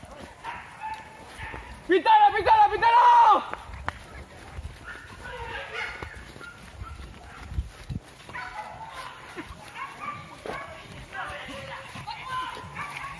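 Footsteps crunch on a dirt path through grass.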